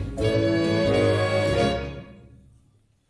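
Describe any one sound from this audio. A band plays a loud final chord in a large hall.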